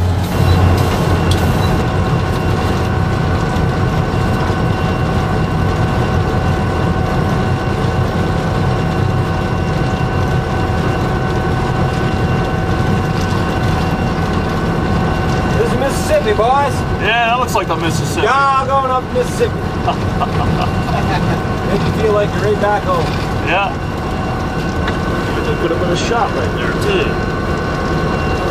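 A diesel locomotive engine rumbles steadily close by.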